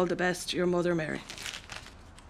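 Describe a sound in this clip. A woman reads out in a raised, sing-song voice nearby.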